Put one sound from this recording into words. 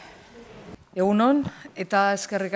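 A woman speaks loudly into a microphone.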